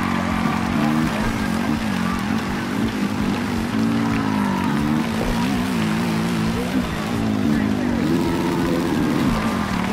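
A motorbike engine revs loudly, rising and falling in pitch as the bike races.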